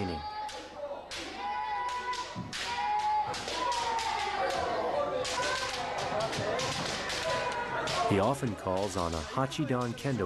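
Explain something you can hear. People shout loudly in an echoing hall.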